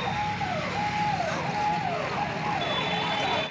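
Tractor engines rumble nearby.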